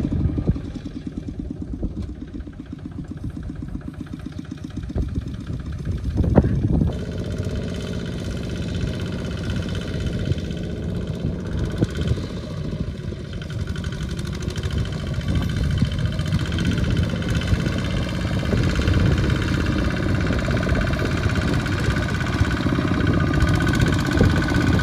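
A small tractor engine chugs steadily close by.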